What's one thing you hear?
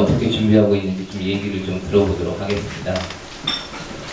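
A man speaks calmly through a microphone and loudspeaker.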